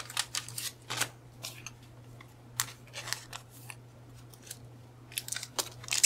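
A plastic sleeve crinkles as it is peeled away.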